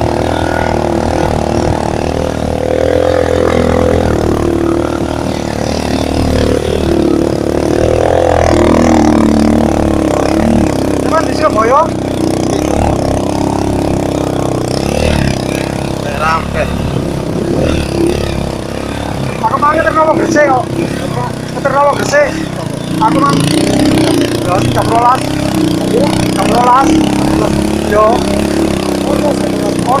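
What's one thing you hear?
Motorcycle tyres crunch over rough dirt.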